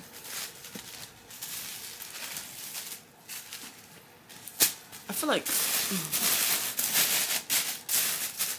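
Clothing rustles and brushes close by.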